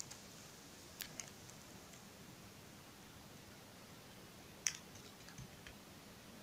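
Small beads click under fingertips.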